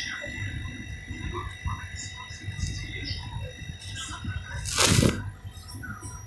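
Fingers fumble and click against a small plastic fitting.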